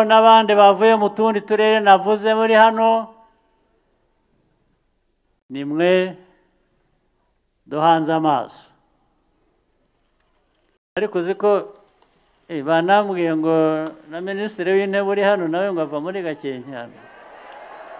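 A man speaks forcefully into a microphone over loudspeakers, in short bursts with pauses.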